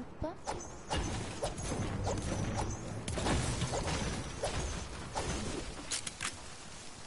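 A pickaxe strikes hard with rapid loud thuds.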